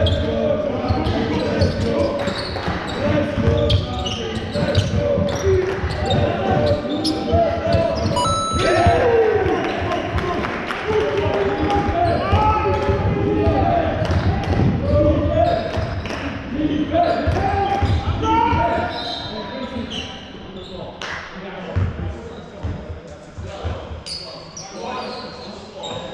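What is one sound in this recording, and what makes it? Sneakers squeak and thud on a hard court in a large echoing hall.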